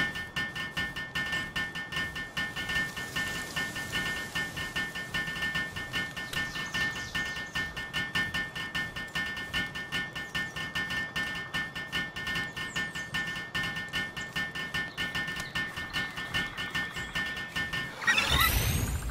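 A hammer taps rapidly and steadily on wood.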